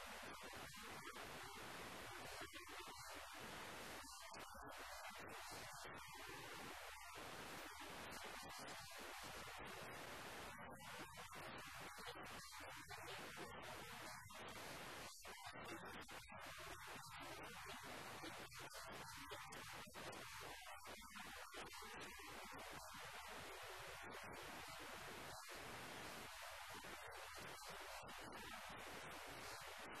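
A man talks calmly and steadily into a close microphone.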